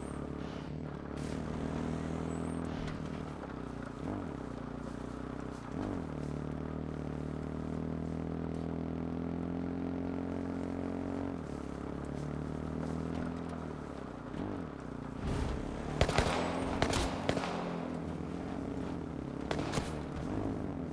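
A quad bike engine hums steadily and changes pitch as the bike drives over rough ground.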